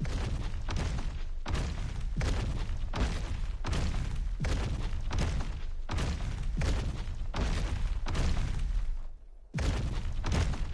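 Heavy creature footsteps thud in a steady rhythm.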